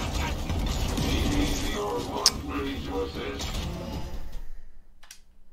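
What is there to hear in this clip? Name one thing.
Gunfire and explosions from a video game rattle loudly.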